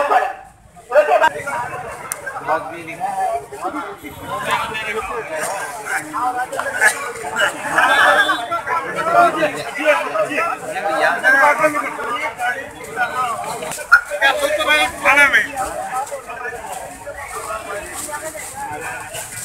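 A crowd of men chatter outdoors.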